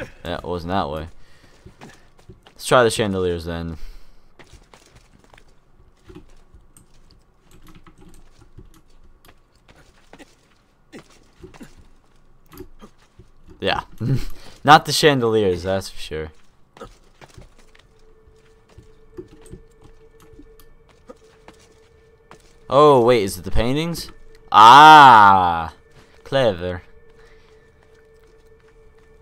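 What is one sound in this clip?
Soft footsteps and thuds of climbing on wood and stone.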